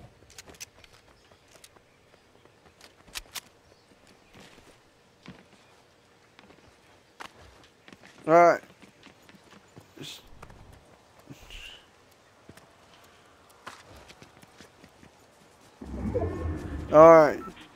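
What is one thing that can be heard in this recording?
Footsteps patter quickly as a figure runs.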